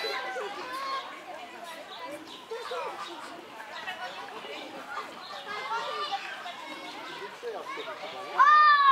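Young pigs squeal and grunt.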